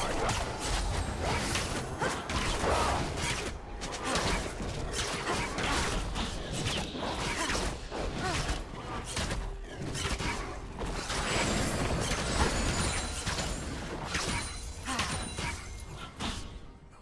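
Magic blasts and hits clash in a fast fantasy battle.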